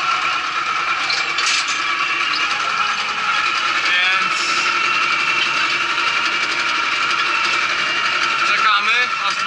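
A tractor engine drones loudly and steadily.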